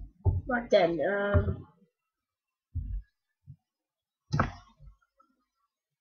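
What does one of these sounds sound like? A block is set down with a short soft thud.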